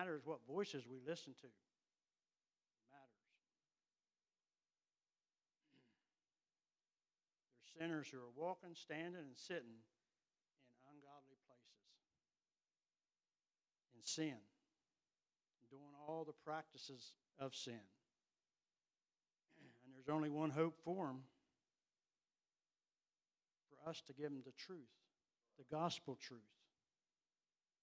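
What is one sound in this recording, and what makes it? An elderly man preaches with feeling into a microphone, pausing often, heard through loudspeakers in a large room.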